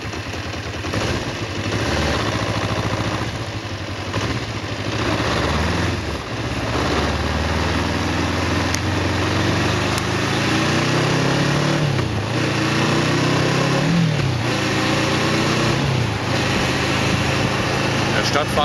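A motorcycle engine revs and pulls away, its pitch rising and falling as it shifts gears.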